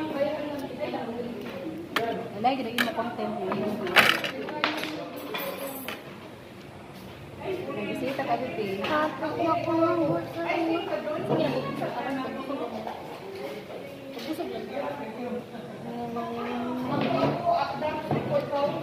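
A young boy talks and murmurs close by.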